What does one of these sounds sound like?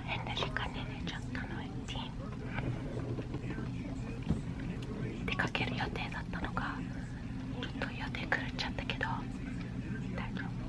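A young woman talks quietly and close up.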